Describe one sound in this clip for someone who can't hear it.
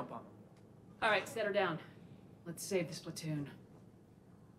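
A young woman speaks firmly.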